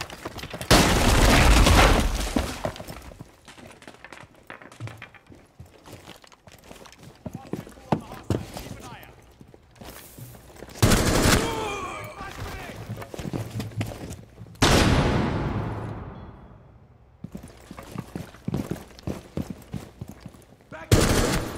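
A rifle fires loud, sharp shots that echo and fade.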